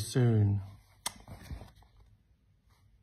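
A phone rattles as it is handled close up.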